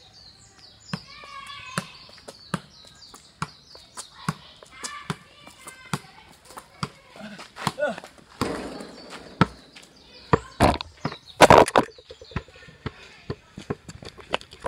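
A ball is kicked repeatedly with sharp, regular thuds outdoors.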